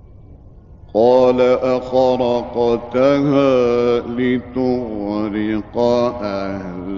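A man chants in a long, melodic voice through an old recording.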